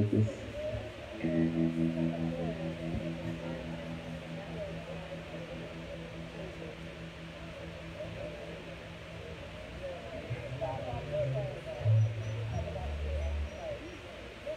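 A bass guitar plays low sustained notes.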